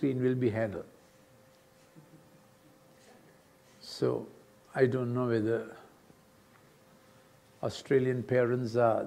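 An elderly man speaks calmly through a microphone in a large room, with pauses between phrases.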